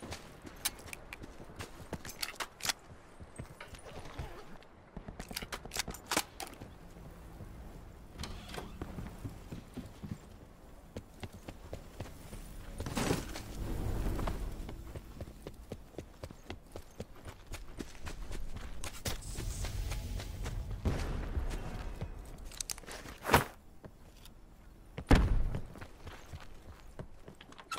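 Quick footsteps run over floors and ground.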